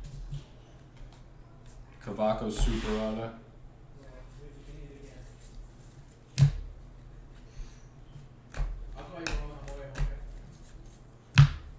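Trading cards slide and flick against each other close by.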